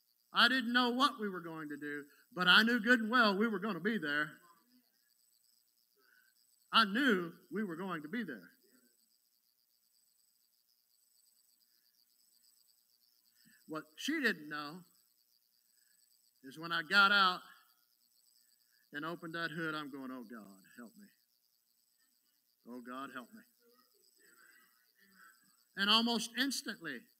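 A middle-aged man speaks with animation into a microphone, pausing between phrases.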